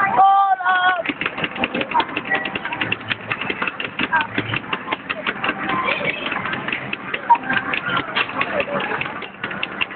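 Rapid crackling and whooshing battle effects play loudly.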